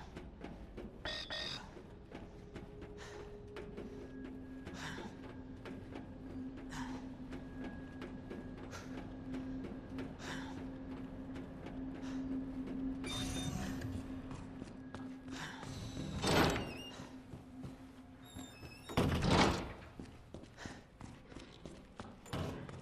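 Footsteps tap on metal flooring.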